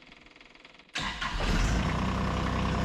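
A small tractor engine cranks and starts, then runs with a steady rumble.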